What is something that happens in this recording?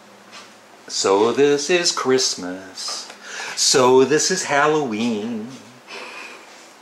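A middle-aged man speaks with animation up close.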